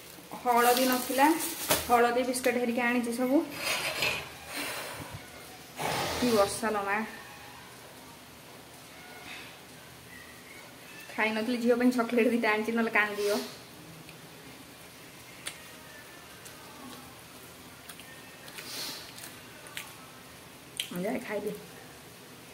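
A woman speaks calmly and close by, in short bursts.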